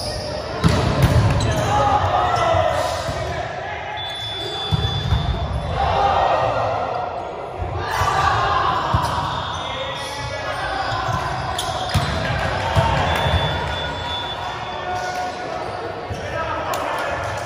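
A volleyball thumps off hands and arms again and again.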